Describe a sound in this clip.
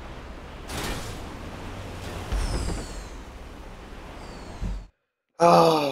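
Wind rushes past a tumbling van.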